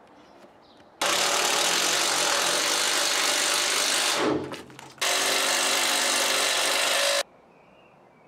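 A cordless drill whirs loudly, driving a screw.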